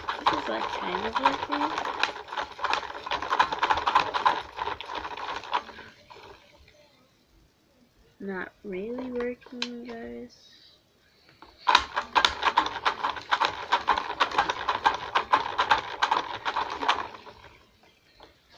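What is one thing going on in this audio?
A small toy motor whirs and rattles as it spins.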